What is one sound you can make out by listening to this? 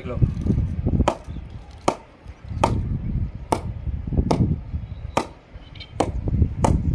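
A cricket ball taps repeatedly against a wooden bat.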